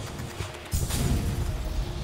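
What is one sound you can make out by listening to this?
A short whooshing dash rushes past.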